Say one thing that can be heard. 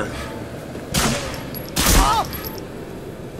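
A pistol fires loud shots that echo in a hall.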